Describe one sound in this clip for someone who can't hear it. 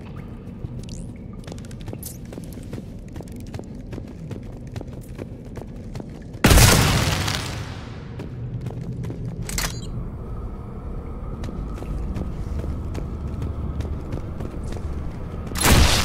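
Heavy footsteps crunch on rocky ground.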